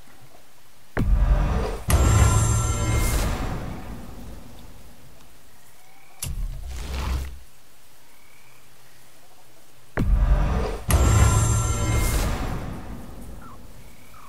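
A deep fiery whoosh swells and slowly fades.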